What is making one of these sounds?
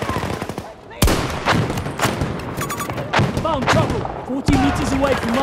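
A rifle fires sharp, loud shots that echo outdoors.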